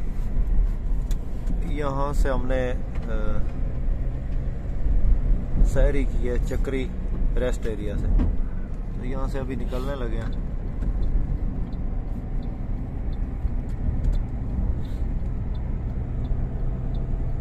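A car engine hums steadily with a low road rumble while driving.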